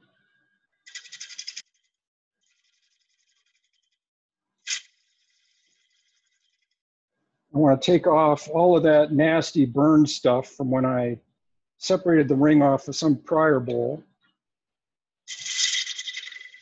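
A wood lathe tool scrapes against spinning wood in short bursts.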